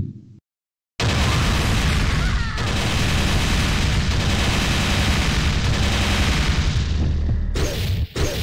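A loud roaring rush of energy swells and holds.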